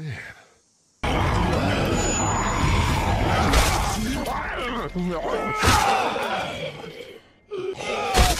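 A creature snarls and growls.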